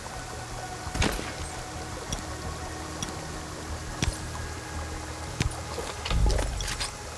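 Menu buttons click sharply a few times.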